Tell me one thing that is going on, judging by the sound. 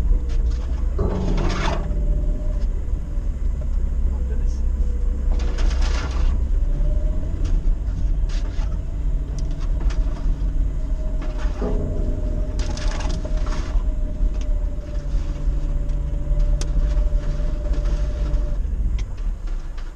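The body of a vehicle rattles and knocks over bumps.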